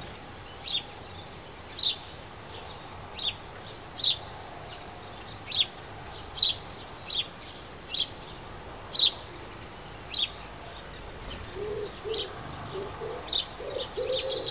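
A sparrow chirps in short, repeated calls nearby.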